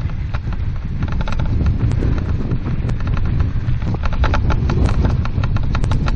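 Wind rumbles over the microphone outdoors.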